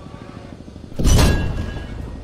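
A rifle shot cracks loudly and booms.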